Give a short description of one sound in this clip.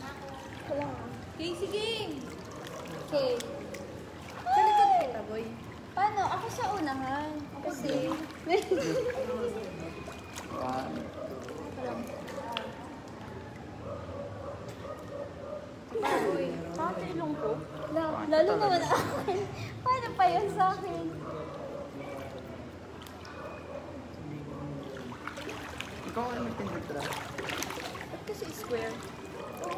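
Water laps gently in a pool.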